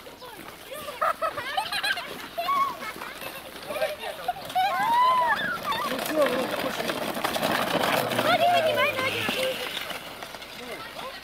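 Children shout and squeal outdoors.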